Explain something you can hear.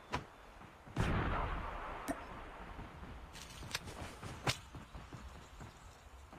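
A smoke grenade hisses.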